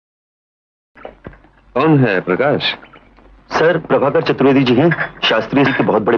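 A young man speaks with animation nearby.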